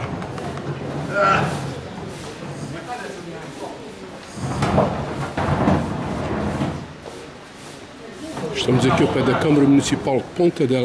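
Men and women chat nearby outdoors.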